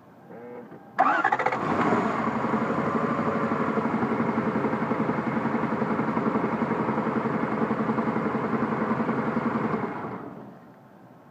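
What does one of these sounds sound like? A car engine starts, idles with a steady rhythmic rumble, then shuts off.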